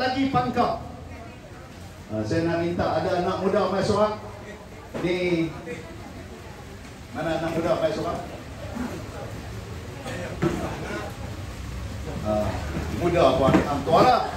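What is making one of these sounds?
A man speaks forcefully into a microphone, heard through a loudspeaker, in an echoing space.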